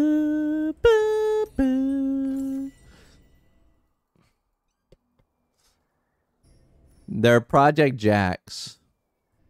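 A young man sings held notes loudly into a close microphone.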